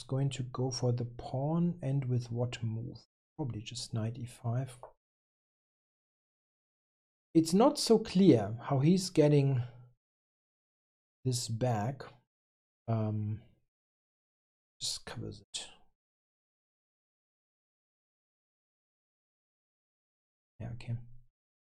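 A middle-aged man talks calmly into a close microphone, in short bursts with pauses.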